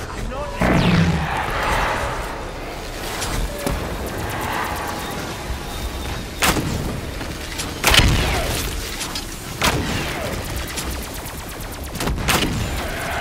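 A fiery bow fires blazing shots with loud whooshing bursts.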